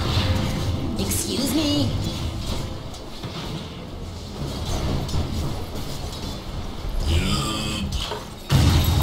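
Spells and weapons clash with sharp magical bursts and hits.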